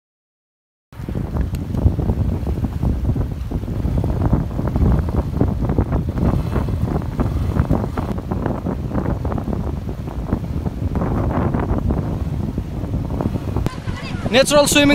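A river flows and splashes over stones.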